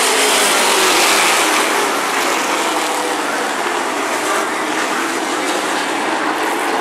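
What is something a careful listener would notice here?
A pack of race car engines roars loudly around a track.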